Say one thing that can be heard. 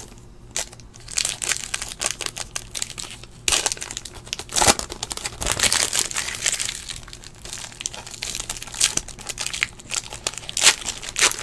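Foil wrappers crinkle and rustle as they are torn open by hand.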